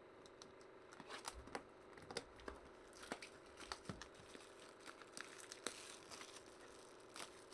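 A foil wrapper crinkles and tears in short bursts.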